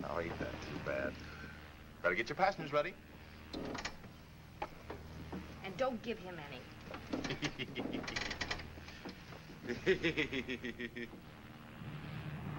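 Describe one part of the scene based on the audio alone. A second man answers with a laugh in his voice.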